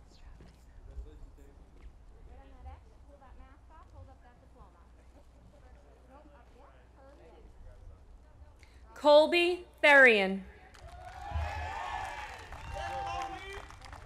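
A woman announces names through a loudspeaker outdoors.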